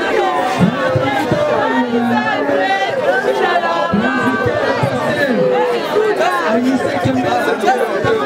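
A man wails and cries out loudly up close.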